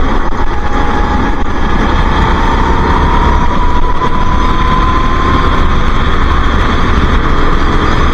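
Wind rushes past in a steady roar.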